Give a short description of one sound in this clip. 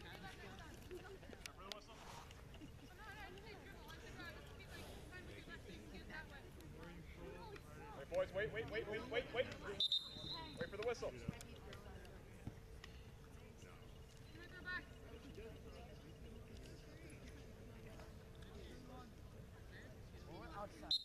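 Young players call out faintly across an open field.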